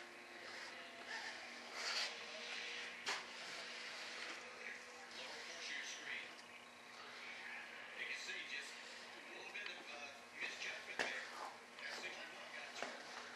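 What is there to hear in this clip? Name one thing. A gloved hand rubs and scrapes along the edge of a stiff foam panel.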